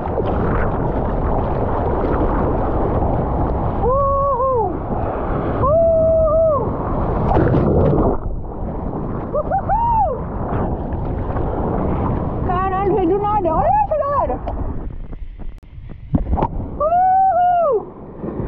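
Water splashes and churns as hands paddle through it.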